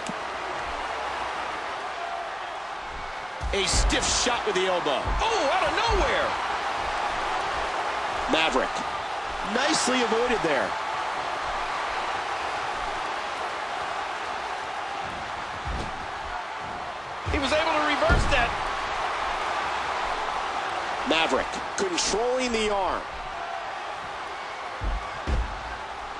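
An arena crowd roars.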